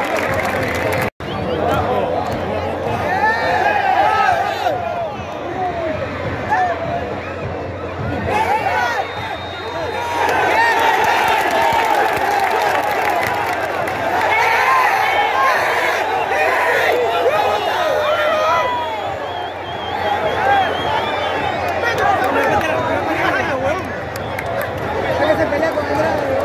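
A huge stadium crowd sings and chants loudly throughout.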